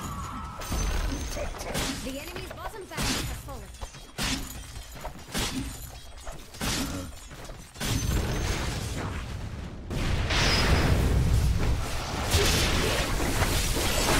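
Game spell effects and attacks clash and crackle in a battle.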